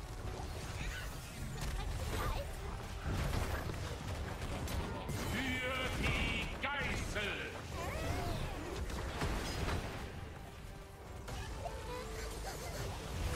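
Game battle effects crash and blast throughout.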